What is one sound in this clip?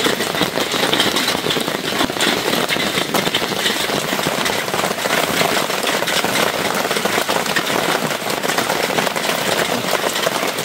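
Rain falls steadily with a dense hiss.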